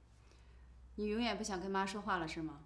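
A woman speaks softly and sadly, close by.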